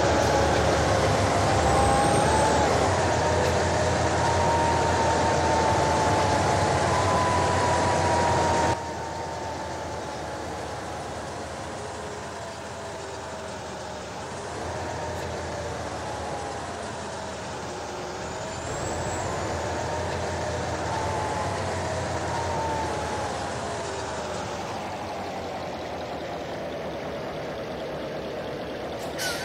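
A truck's diesel engine hums steadily, its pitch slowly rising and falling as it drives.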